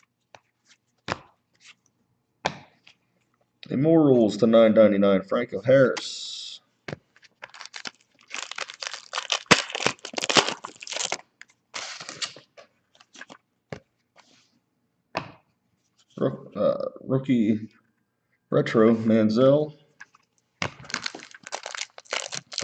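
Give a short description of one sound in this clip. Trading cards rustle and slide against each other in the hands.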